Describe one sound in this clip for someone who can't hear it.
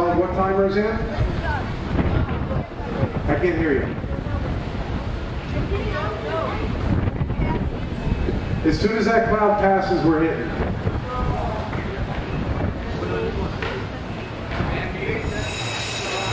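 A rock band plays loudly through loudspeakers.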